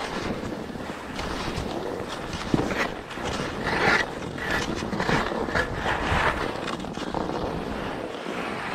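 Skis hiss and scrape over packed snow.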